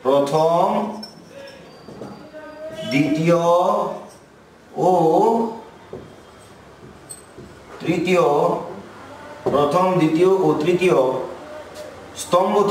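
A man speaks calmly and explains at a steady pace.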